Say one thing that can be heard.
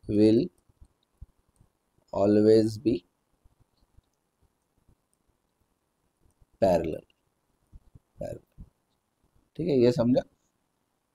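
A young man speaks calmly and slowly into a close microphone, in short phrases with pauses.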